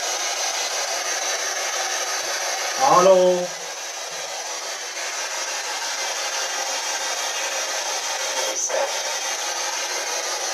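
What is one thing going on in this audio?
A small radio device hisses with steady static from close by.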